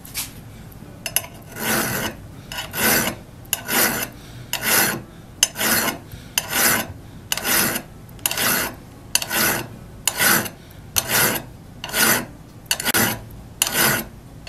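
A file rasps back and forth across wood in steady, even strokes.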